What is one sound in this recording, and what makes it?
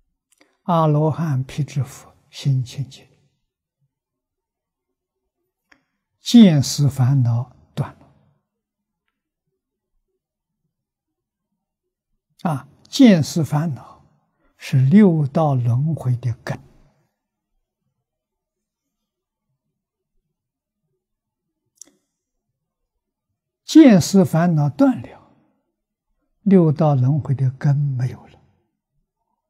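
An elderly man speaks slowly and calmly into a close microphone, with long pauses.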